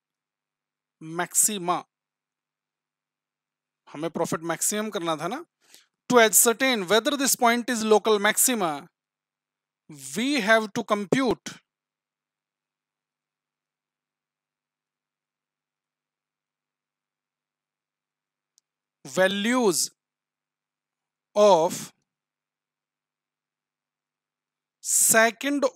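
A man speaks calmly into a close microphone, in short phrases with long pauses.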